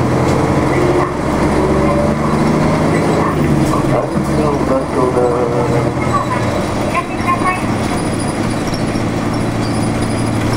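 Cars pass by close on the road.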